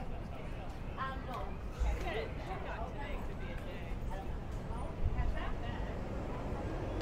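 Adults and children chatter nearby as they pass.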